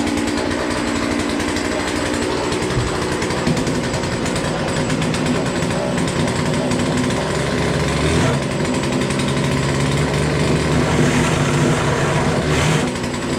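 A chainsaw engine runs loudly and steadily, revving now and then.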